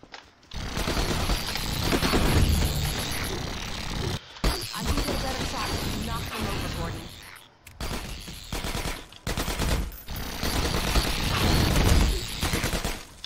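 A weapon fires bursts of energy shots.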